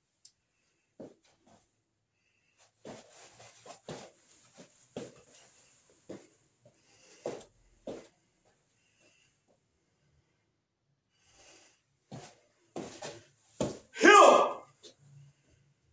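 A man's feet thump and shuffle on a soft mat.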